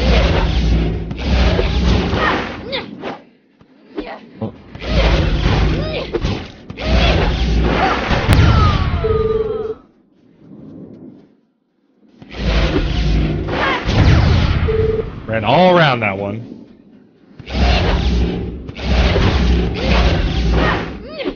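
Video game sound effects whoosh and chime.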